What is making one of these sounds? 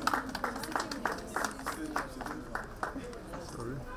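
A crowd claps hands in a steady rhythm.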